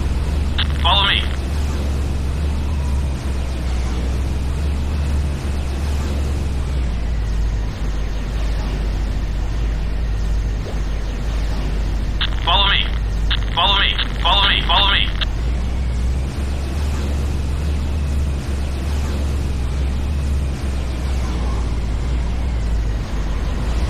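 Electricity crackles and buzzes beneath a hovering vehicle.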